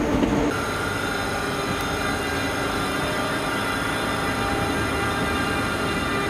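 Train wheels rumble and squeal on the rails.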